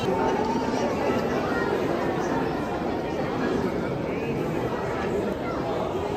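A crowd of people murmurs in a large echoing hall.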